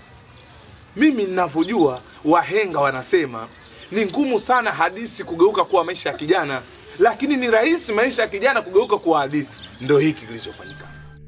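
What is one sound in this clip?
A young man sings loudly and with feeling, close by.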